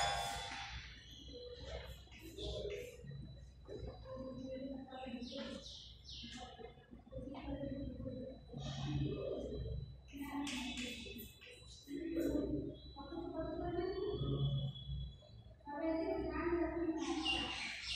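A woman speaks calmly and clearly, as if teaching, close by.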